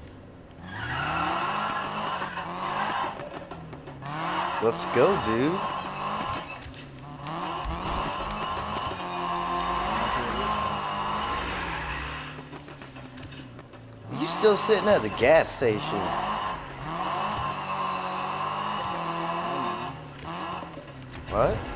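A car engine revs hard and roars through gear changes.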